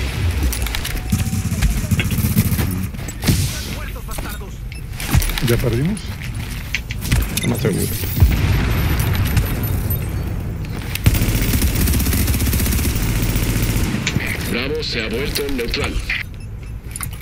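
Rifle gunfire crackles in rapid bursts.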